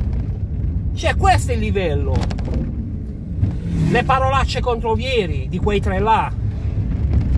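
A middle-aged man talks with animation close by, inside a car.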